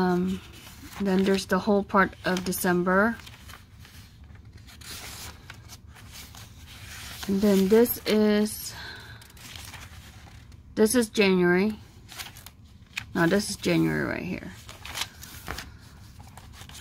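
Paper pages rustle and flip as they are turned.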